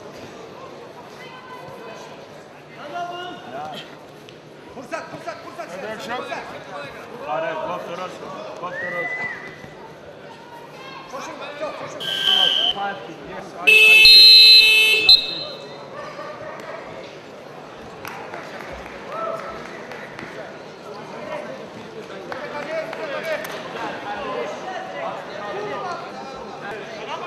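A large crowd murmurs and calls out in an echoing hall.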